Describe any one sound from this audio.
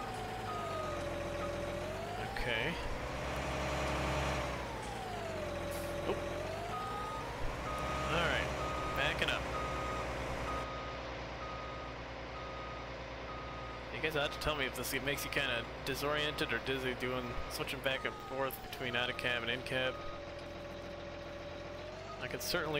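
A large diesel tractor engine hums and revs up and down.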